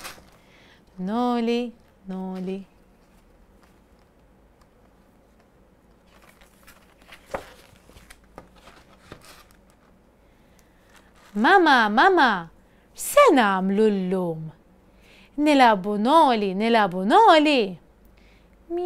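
A woman reads aloud close by in a lively, playful voice.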